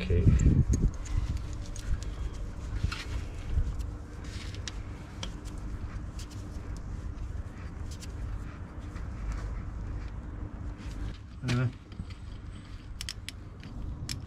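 A metal wrench clicks and knocks against car parts.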